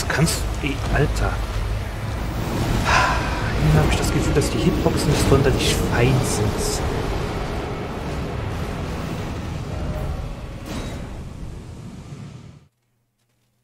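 A low rumbling drone hangs in the background and fades away.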